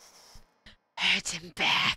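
A woman cries out loudly into a close microphone.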